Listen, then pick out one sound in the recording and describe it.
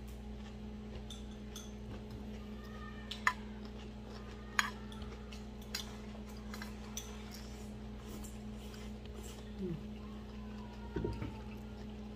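A metal spoon clinks against a metal bowl.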